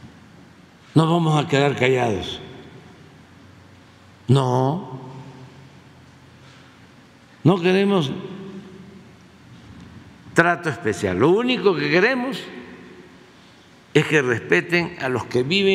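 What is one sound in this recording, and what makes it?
An elderly man speaks slowly and deliberately into a microphone, with pauses between phrases, in a reverberant room.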